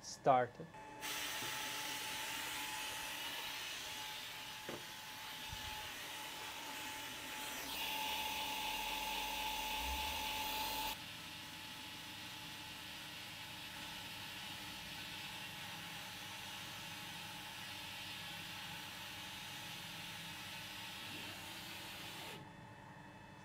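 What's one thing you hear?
A diode laser engraver's stepper motors whir as its head moves back and forth.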